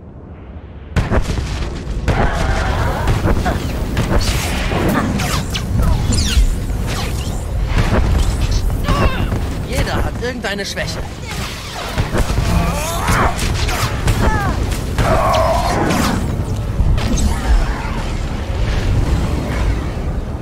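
Blasts crackle and burst with sharp zaps.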